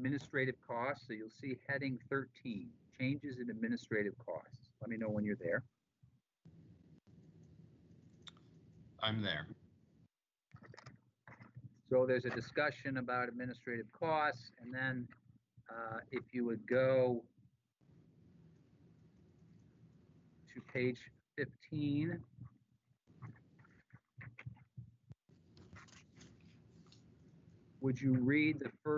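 A man speaks calmly over an online call, in bursts with pauses.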